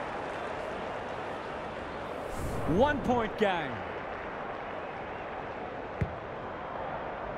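A large stadium crowd cheers and roars steadily.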